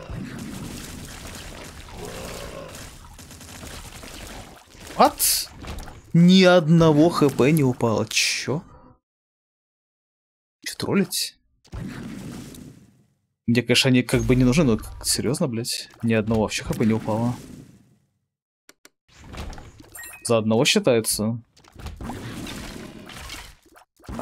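Wet splats and small explosions burst out in quick succession.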